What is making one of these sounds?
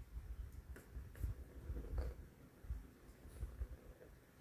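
A cat's paw taps against a plastic toy ring.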